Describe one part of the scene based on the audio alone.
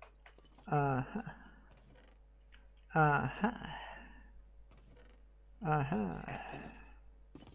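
A wooden chest creaks open and thuds shut, several times.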